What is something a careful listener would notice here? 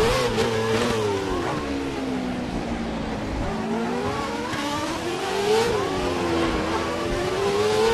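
A racing car engine whines loudly, its pitch rising and falling with gear changes.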